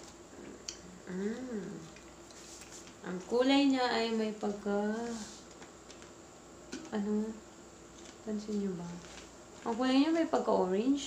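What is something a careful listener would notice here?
A young woman talks close by, calmly and in short bursts.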